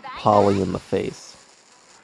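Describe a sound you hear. A magical energy blast whooshes and crackles.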